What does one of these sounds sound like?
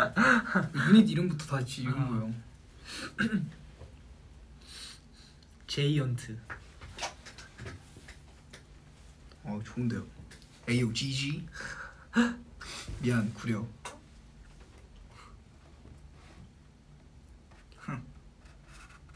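A young man talks casually close by, with pauses.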